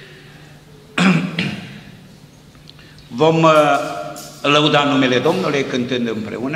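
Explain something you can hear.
An elderly man speaks slowly and earnestly into a microphone, in a room with some echo.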